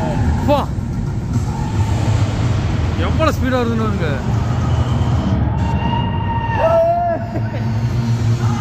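Riders on a roller coaster scream.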